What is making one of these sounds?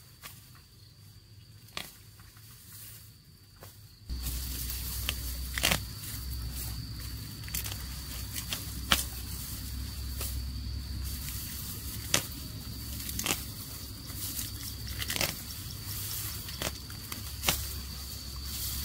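Dry grass stalks rustle and crackle as hands pull at them.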